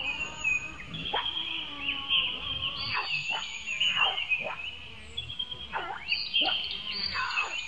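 A young monkey squeaks in short, high, falling cries.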